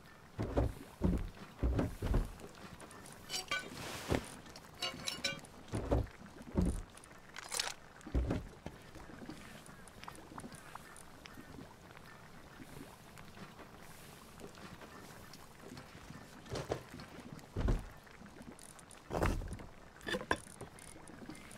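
Game items thud and clink as they are moved between inventory slots.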